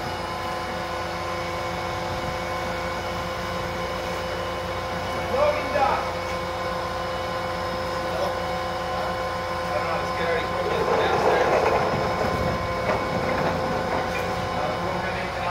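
A crane's engine hums steadily nearby.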